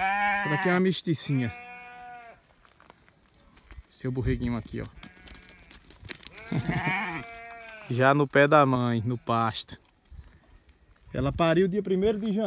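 Goats bleat loudly and repeatedly close by.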